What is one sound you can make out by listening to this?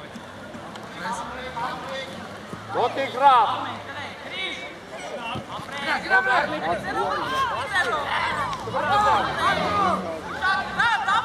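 Young boys shout to each other across an open field.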